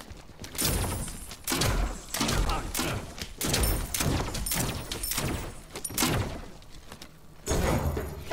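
Game spells burst and whoosh in quick blasts.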